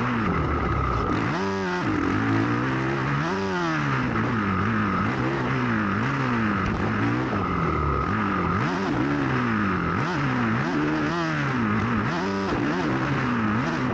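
A dirt bike engine revs up and down loudly and close by, over and over.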